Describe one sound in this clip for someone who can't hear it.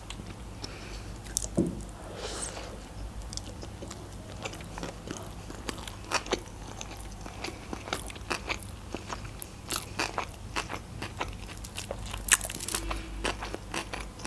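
A young woman chews food close to a microphone, with wet smacking and crunching sounds.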